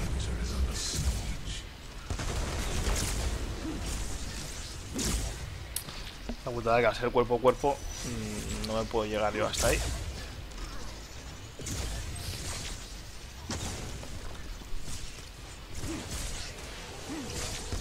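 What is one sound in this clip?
Energy weapons fire in repeated bursts.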